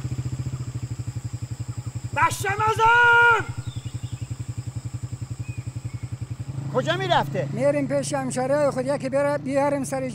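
A motorcycle engine idles with a rapid, steady putter.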